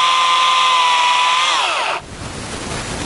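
A chainsaw revs high and cuts into wood.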